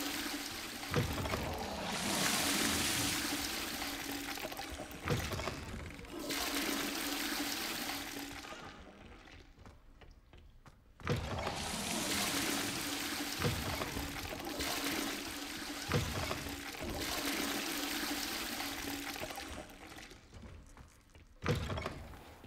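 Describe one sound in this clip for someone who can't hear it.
Wooden doors bang open, one after another.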